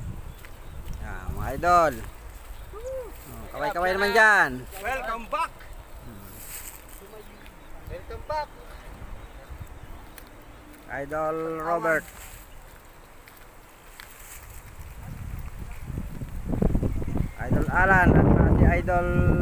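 Men talk and call out loudly outdoors, close by.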